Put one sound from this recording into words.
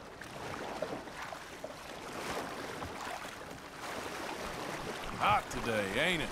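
Water laps gently against a wooden canoe.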